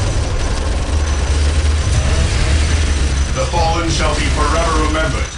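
A low, steady rumble of machinery hums.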